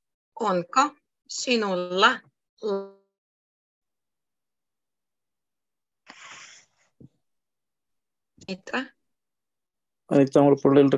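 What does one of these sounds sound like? A young woman speaks clearly over an online call, in short phrases.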